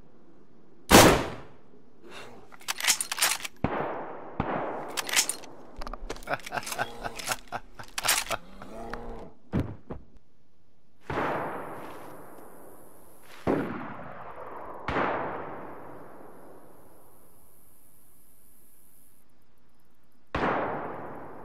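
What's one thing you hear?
A rifle shot cracks and echoes.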